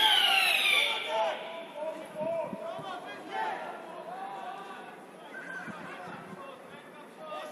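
Football players shout to each other far off across an open outdoor pitch.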